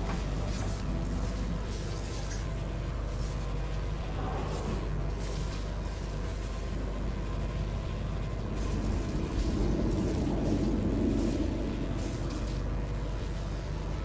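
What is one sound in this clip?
Electricity crackles and buzzes in sparks.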